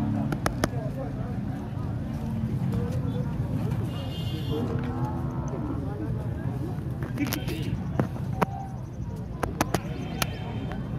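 A crowd of men talks and calls out nearby, outdoors.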